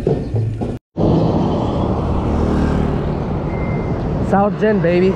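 A motor scooter drives past.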